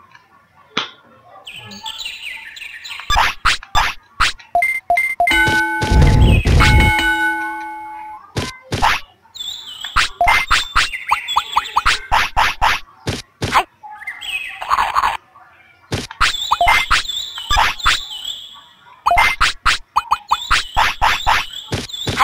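Short electronic menu blips click in quick bursts.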